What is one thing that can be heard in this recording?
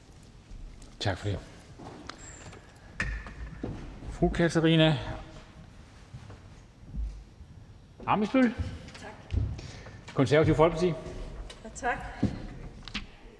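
A man speaks briefly through a microphone in a large echoing hall.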